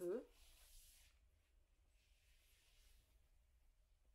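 A cloth bag rustles softly as hands handle it.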